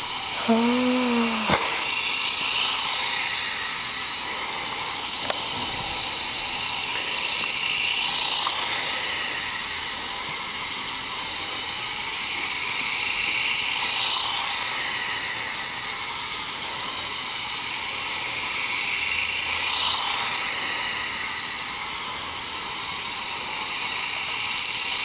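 A toy car's electric motor whirs steadily.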